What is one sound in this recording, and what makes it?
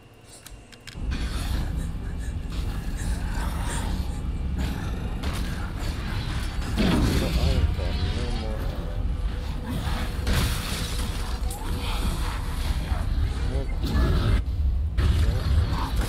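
Loud game sounds rumble and crash.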